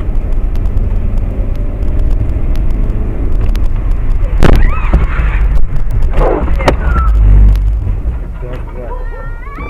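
A car drives on a wet road, with its rumble heard from inside the car.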